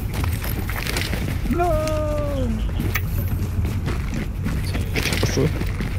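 Gear rattles as a soldier vaults over a low wall.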